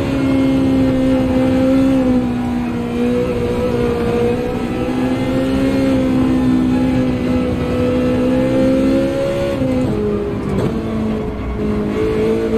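A racing car engine drones steadily at high revs, its pitch dipping briefly when shifting gears.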